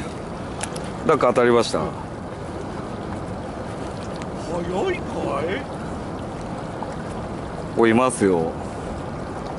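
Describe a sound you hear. A man speaks in short bursts nearby, outdoors.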